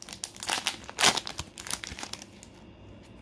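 A foil card pack crinkles and rustles as it is torn open.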